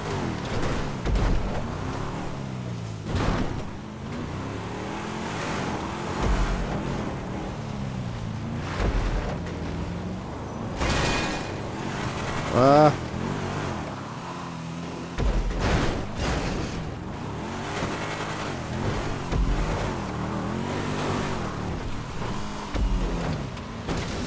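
A car's suspension thumps over bumps.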